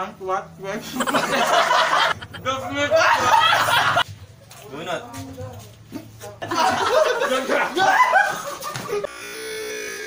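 A group of young men and a young woman laugh loudly together.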